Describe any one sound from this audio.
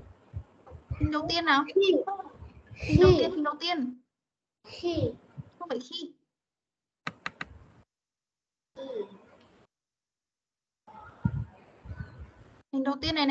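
A child speaks over an online call.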